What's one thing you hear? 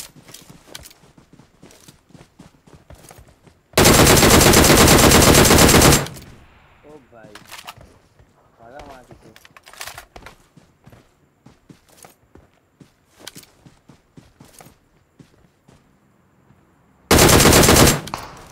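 Rifle shots crack.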